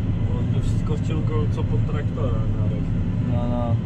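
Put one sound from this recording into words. A young man speaks casually up close.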